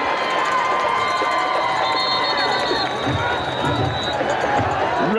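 A referee's whistle blows shrilly.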